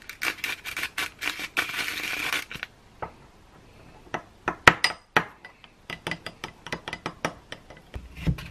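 A metal spoon clinks against a glass bowl while stirring.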